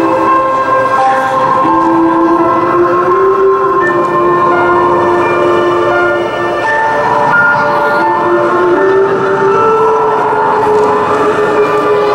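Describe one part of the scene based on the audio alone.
A woman sings in long, held notes through a loudspeaker in a large hall.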